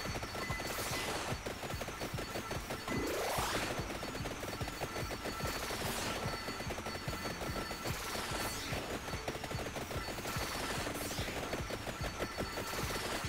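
Rapid electronic hit sounds patter nonstop as enemies are struck.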